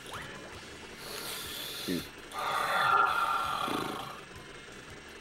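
A bubble whooshes and pops.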